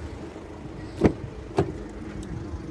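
A car door unlatches and swings open.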